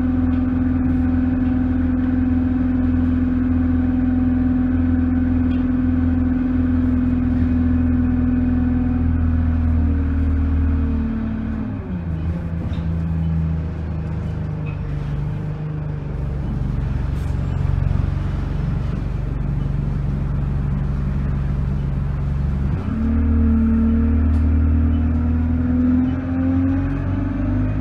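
A bus engine hums steadily from inside the cabin, dropping in pitch as the bus slows and rising again as it pulls away.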